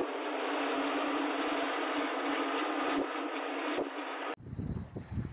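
Strong wind roars through a blizzard outdoors.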